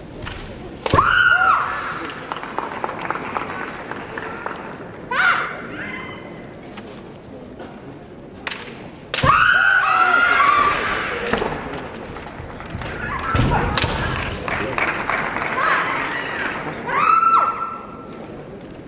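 Kendo fighters shout loud, high cries as they attack.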